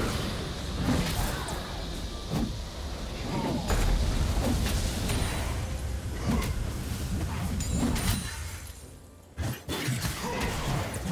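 Sharp hits and impacts clatter during the fight.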